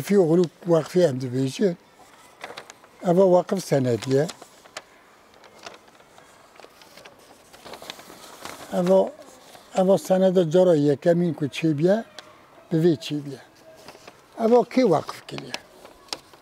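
An elderly man speaks calmly and close by, through a lapel microphone.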